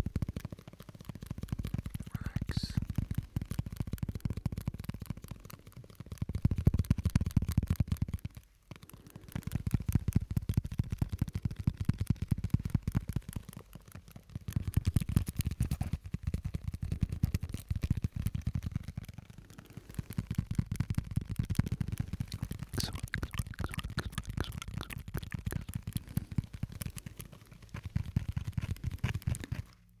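Crinkly plastic or foil is rubbed and crumpled close to a microphone.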